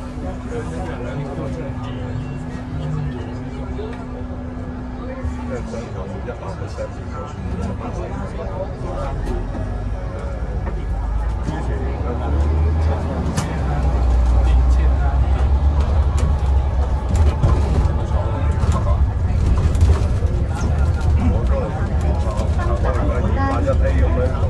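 A bus engine hums low and grows louder as the bus pulls away.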